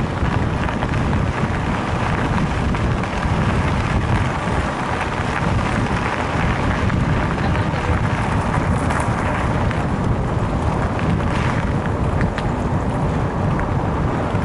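Bicycle tyres crunch steadily over gravel.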